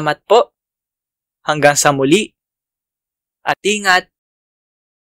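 A young man speaks animatedly in short bursts, close to a microphone.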